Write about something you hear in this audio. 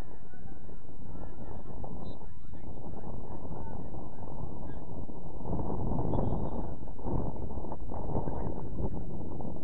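Wind buffets the microphone outdoors on an open field.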